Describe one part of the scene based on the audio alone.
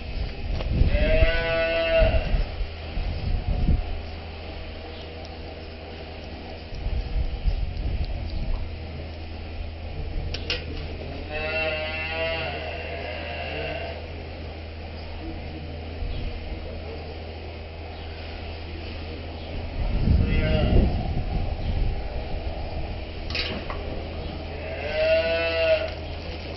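Cows moo loudly nearby, now and then.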